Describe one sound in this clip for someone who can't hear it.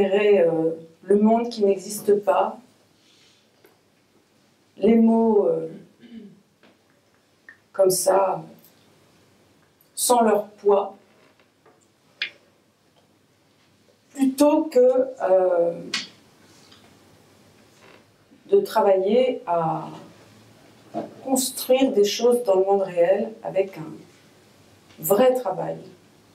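A woman speaks calmly into a microphone, in short phrases with pauses.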